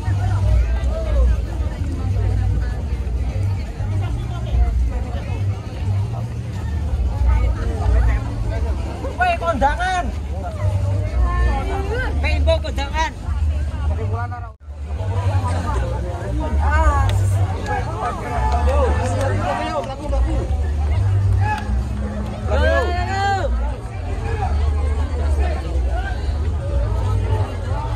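A crowd of people chatters outdoors all around.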